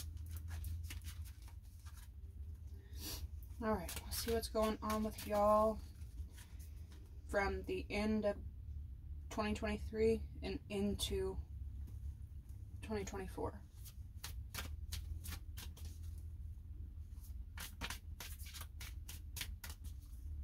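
Playing cards riffle and snap as they are shuffled by hand.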